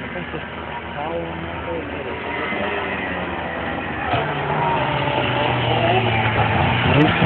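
Snowmobile engines roar and rev nearby, outdoors.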